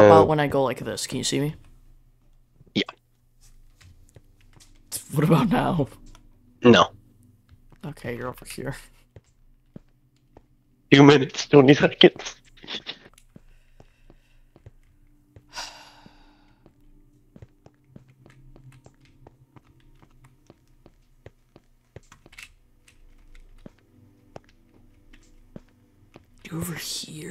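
Footsteps tap on hard stone.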